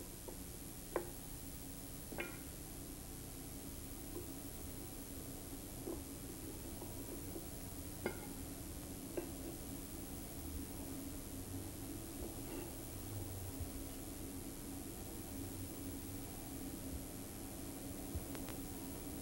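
Wooden pieces knock softly against each other as they are set in place.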